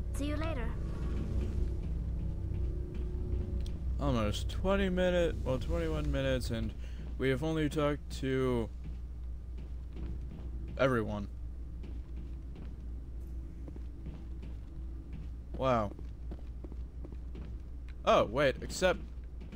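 Footsteps tread on a metal floor.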